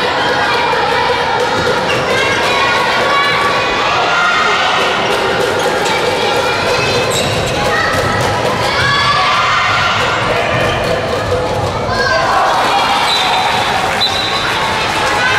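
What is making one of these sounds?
A crowd of young spectators cheers and shouts loudly in a large echoing hall.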